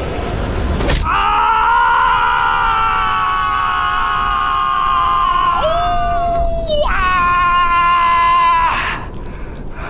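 A young man screams loudly in pain.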